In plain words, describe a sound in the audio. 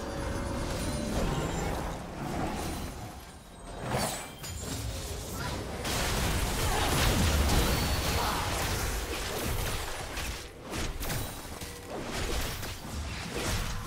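Spell effects and combat sounds of a video game clash and burst.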